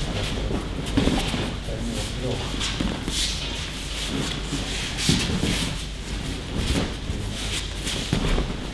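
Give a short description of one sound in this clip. Bodies thud onto a padded mat in a large echoing hall.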